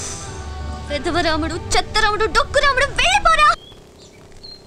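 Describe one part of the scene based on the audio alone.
A young woman cries out in distress close by.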